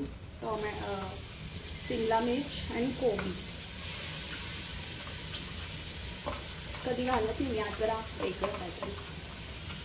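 Chopped vegetables tumble into a pot.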